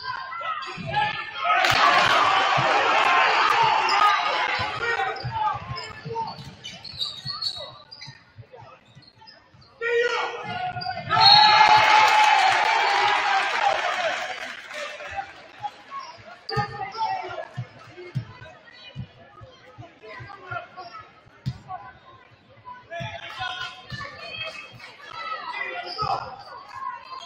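Basketball shoes squeak on the wooden floor.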